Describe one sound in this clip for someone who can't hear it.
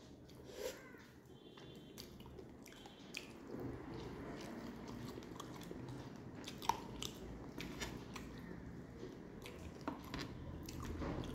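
A woman chews food noisily close up.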